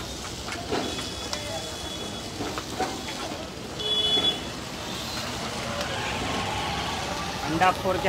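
An egg shell cracks against a pan.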